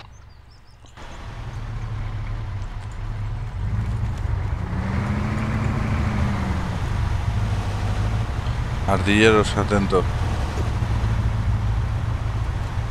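A vehicle engine rumbles steadily at low pitch.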